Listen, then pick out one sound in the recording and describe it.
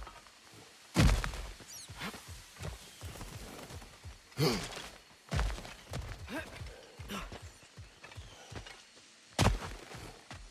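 A heavy body lands with a thud on stone.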